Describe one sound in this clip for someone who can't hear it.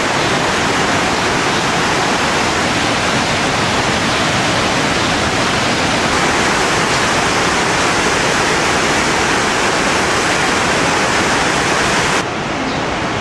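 A waterfall roars, cascading over rocks.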